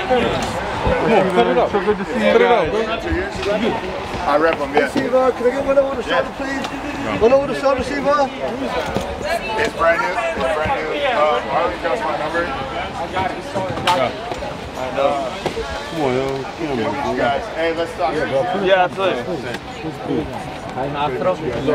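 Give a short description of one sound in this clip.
Several men talk and call out close by, overlapping one another.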